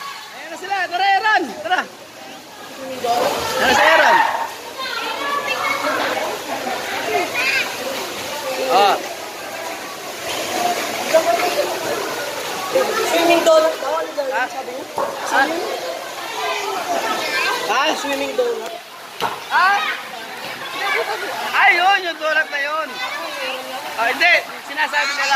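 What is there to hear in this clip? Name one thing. Water splashes as children play.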